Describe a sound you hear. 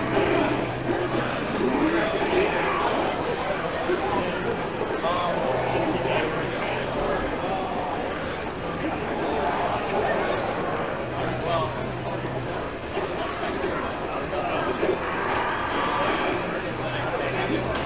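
A crowd of people chatters in a large, noisy room.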